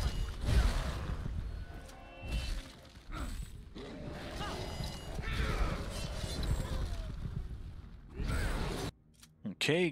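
Weapons clash and strike in a fierce fight.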